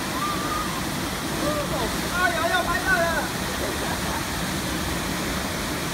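A body splashes into a pool of water.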